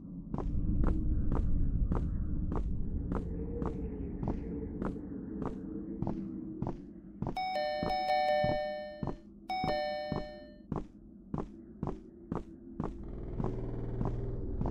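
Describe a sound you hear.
Footsteps tap at a steady, quick pace.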